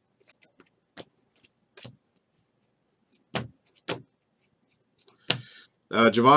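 Trading cards are flicked through by hand, snapping and rustling.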